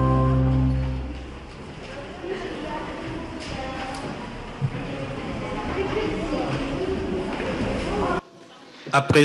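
Children sing together in an echoing hall.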